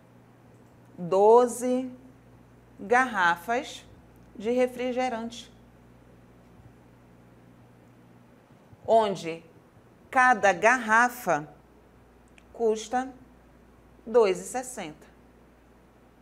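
A woman speaks calmly into a microphone, in short phrases with pauses.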